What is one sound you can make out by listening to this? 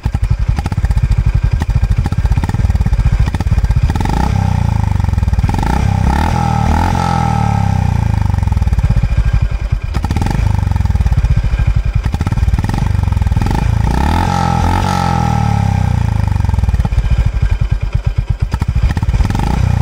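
A motorcycle engine idles close by with a deep, rapid exhaust putter that revs up now and then.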